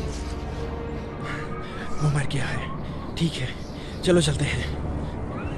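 A man shouts hoarsely close by.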